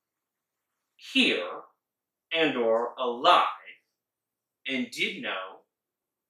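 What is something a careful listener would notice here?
A man speaks with animation close by, in short bursts.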